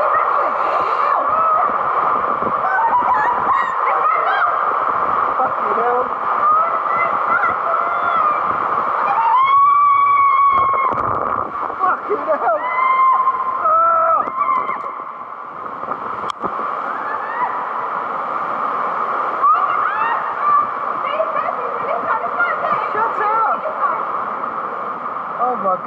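A young girl laughs and shouts close by.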